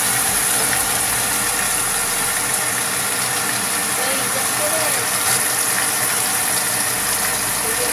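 Meat sizzles steadily in a hot frying pan.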